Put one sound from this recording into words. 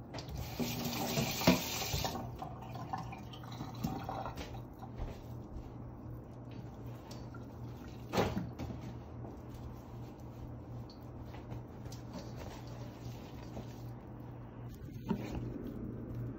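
Hands squish and knead raw ground meat in a metal bowl.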